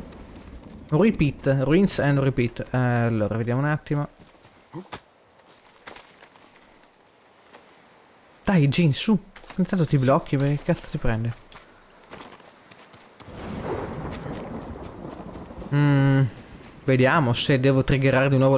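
A young man talks calmly into a microphone, close by.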